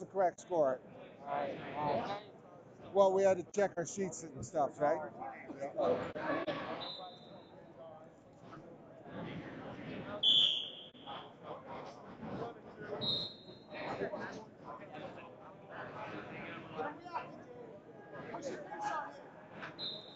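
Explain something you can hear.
Men shout encouragement in a large echoing hall.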